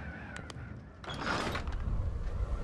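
Wooden shutters are pushed open with a knock.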